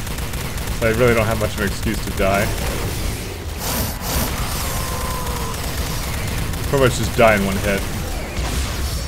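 Monsters screech and snarl in a fight.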